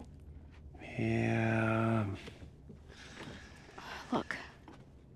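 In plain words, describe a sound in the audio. A man hesitates with a drawn-out murmur.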